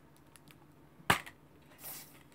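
A plastic case snaps open with a click.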